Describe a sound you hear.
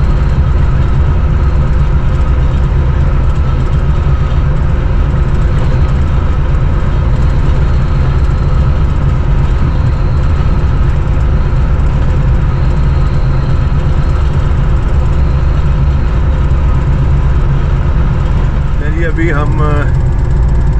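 A diesel locomotive engine rumbles steadily up close.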